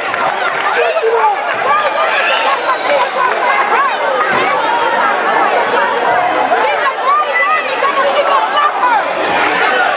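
A crowd of young spectators chatters and calls out in an echoing gym.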